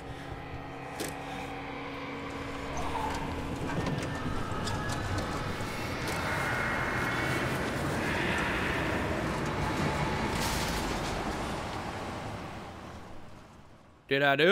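An engine rumbles loudly and then fades away.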